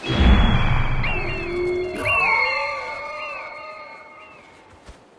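An eagle screeches several times.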